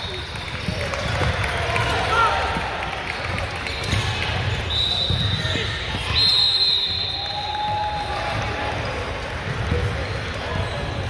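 A crowd of spectators chatters in a large echoing gym.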